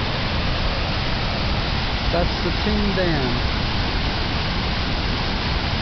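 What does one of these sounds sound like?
Floodwater thunders steadily over a weir.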